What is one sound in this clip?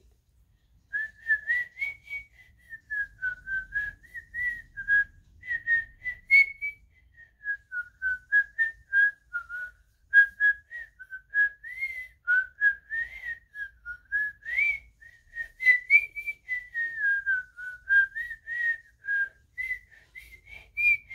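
A young boy whistles a wavering tune, close by.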